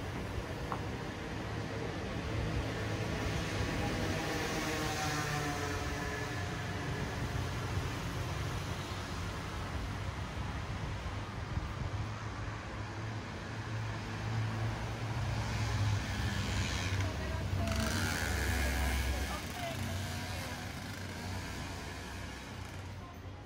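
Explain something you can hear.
Traffic hums steadily in the street nearby.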